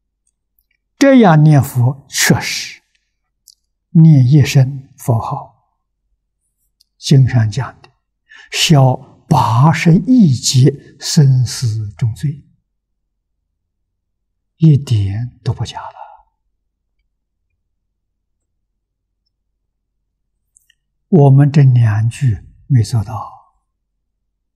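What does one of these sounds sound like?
An elderly man speaks calmly into a close microphone, with long pauses.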